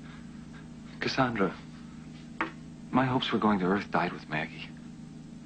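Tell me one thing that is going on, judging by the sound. A young man speaks tensely, up close.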